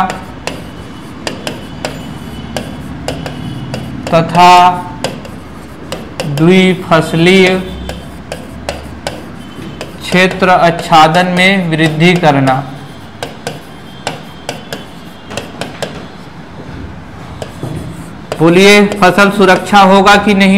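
A marker taps and scratches on a board.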